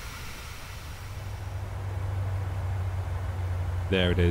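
A deep engine drone grows louder, heard from inside an aircraft cabin.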